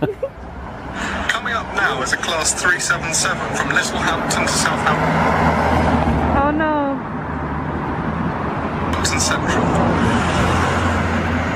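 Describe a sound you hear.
A young man talks cheerfully through a small phone speaker.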